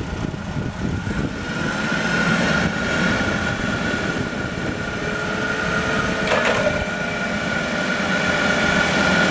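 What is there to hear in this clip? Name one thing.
A forklift engine runs steadily close by.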